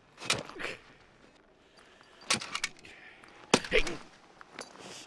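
An elderly man gasps and groans close by.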